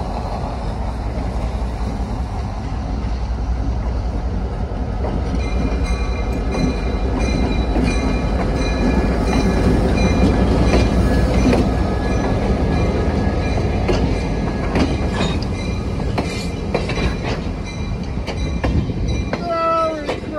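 A diesel locomotive rumbles loudly as it rolls past close by.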